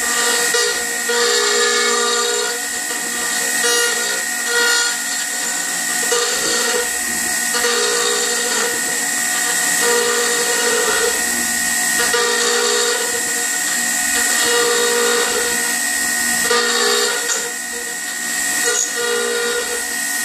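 A router motor whines loudly and steadily.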